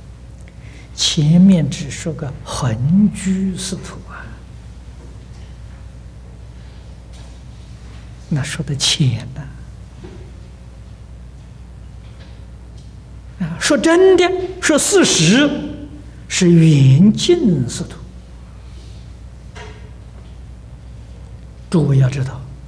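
An elderly man speaks slowly and calmly into a microphone, pausing between phrases.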